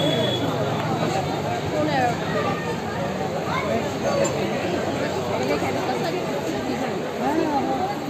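A crowd of people chatter loudly outdoors.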